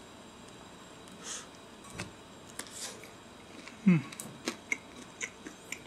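A man chews food with soft smacking sounds close by.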